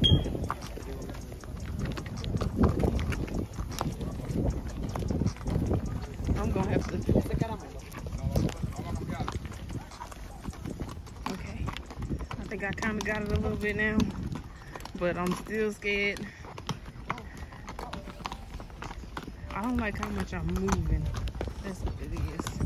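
Horse hooves clop steadily on a dirt track.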